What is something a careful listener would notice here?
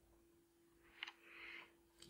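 A plastic dental retainer clicks softly between fingers.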